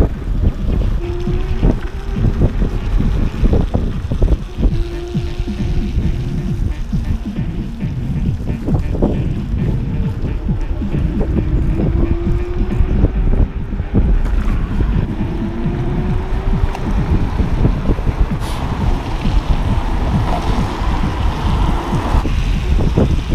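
An electric motor whines, rising and falling in pitch.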